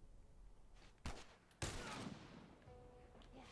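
A gunshot cracks and rings out.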